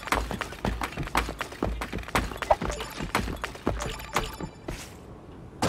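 Game gunfire crackles in quick bursts.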